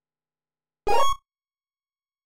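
A short electronic video game chime sounds.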